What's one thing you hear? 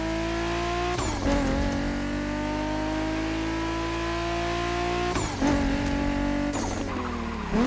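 A sports car engine drops in pitch with each gear shift.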